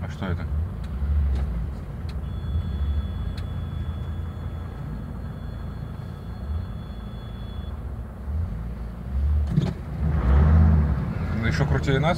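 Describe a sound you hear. Another car drives past close by.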